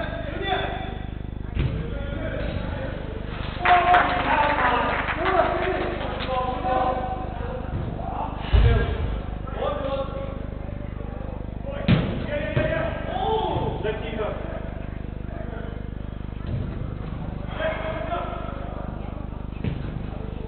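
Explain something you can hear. Young men shout to each other across a large echoing indoor hall.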